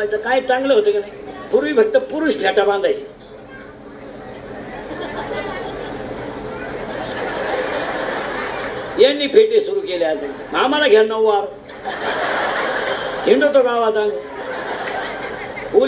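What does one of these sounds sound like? A middle-aged man sings loudly through a microphone in an echoing space.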